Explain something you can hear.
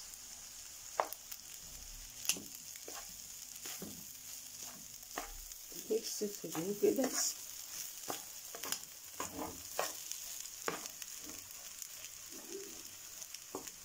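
A wooden spatula scrapes and knocks against a frying pan.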